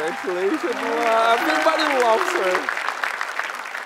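A young woman laughs tearfully close by.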